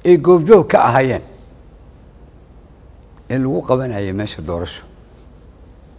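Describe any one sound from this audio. A middle-aged man speaks into a microphone in a firm, measured voice.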